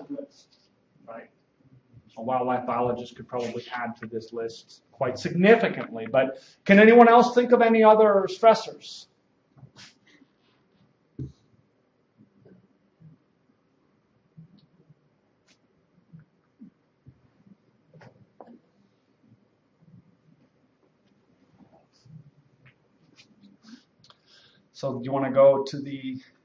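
A man lectures through a microphone in a room, pausing at length between phrases.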